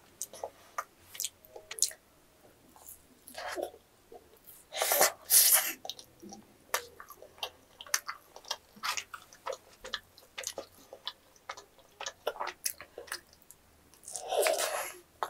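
A young woman chews noisily close to a microphone.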